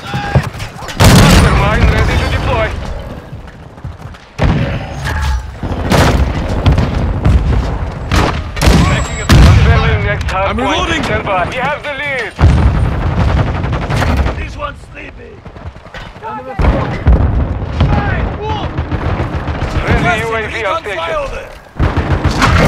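Guns fire in loud, sharp bursts.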